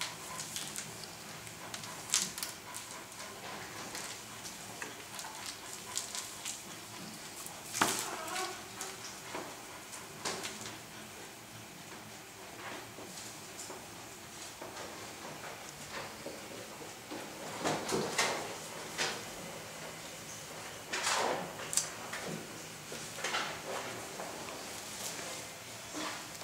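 A puppy's paws scratch and patter on a tiled floor.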